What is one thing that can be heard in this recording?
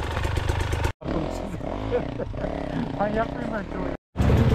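Several dirt bike engines idle nearby.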